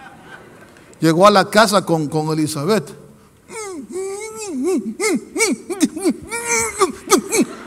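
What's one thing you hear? A middle-aged man preaches with passion through a microphone, his voice rising and falling.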